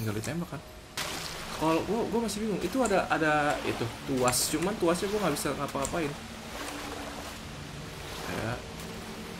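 Water splashes as a swimmer paddles through it.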